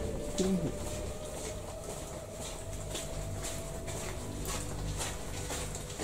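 Footsteps crunch and splash along a wet, echoing tunnel floor.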